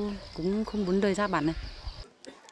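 A young woman speaks gently and close by.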